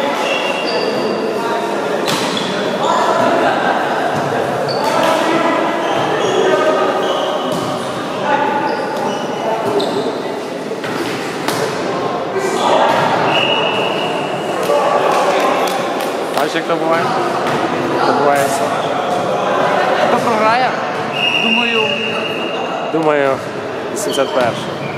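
Teenage boys shout and call out to each other in a large echoing hall.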